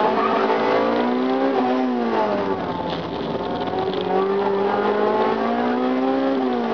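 A car engine revs hard, its pitch rising and falling.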